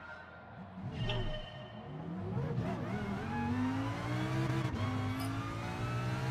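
A race car engine revs up and roars as it accelerates, rising in pitch.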